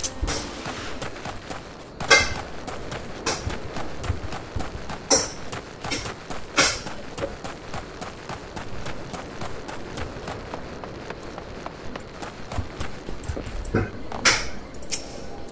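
Footsteps patter quickly over dirt and stone.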